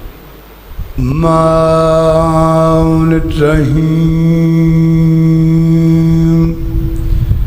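A man chants loudly in long held notes through a microphone and loudspeakers.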